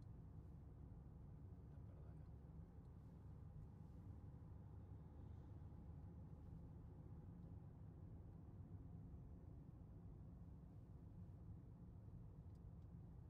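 A car engine hums steadily with road noise from inside the moving car.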